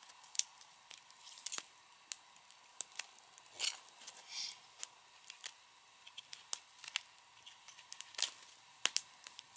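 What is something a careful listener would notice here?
A small wood fire crackles and pops.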